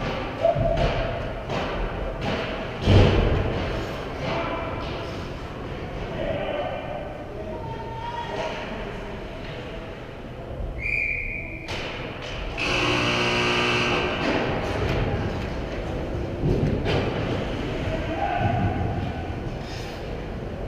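Ice skates scrape across a rink in a large echoing arena.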